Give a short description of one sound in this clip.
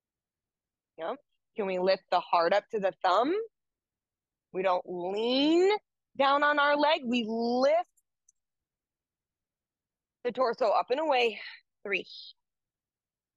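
A woman speaks calmly and clearly through a close microphone, with pauses.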